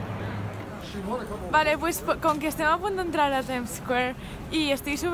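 A young woman talks excitedly and close up.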